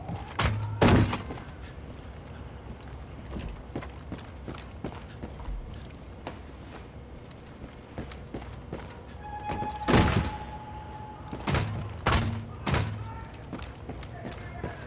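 Footsteps tread steadily across a hard floor.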